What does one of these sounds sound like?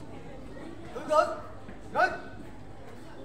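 A young woman shouts short sharp commands outdoors.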